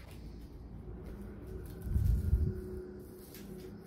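Fabric rustles as a bag is handled.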